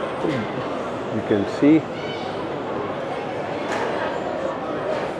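A crowd murmurs steadily in a large echoing hall.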